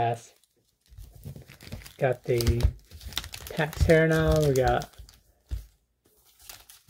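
Foil card packs crinkle and rustle as hands handle them.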